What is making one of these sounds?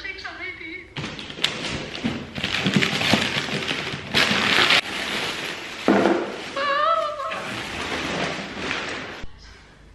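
Wrapping paper rustles and tears loudly.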